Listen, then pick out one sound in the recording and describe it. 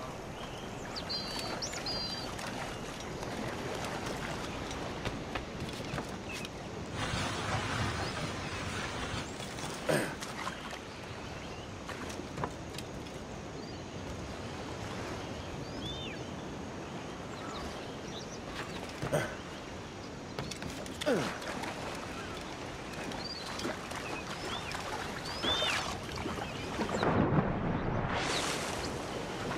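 Waves lap gently against a rocky shore.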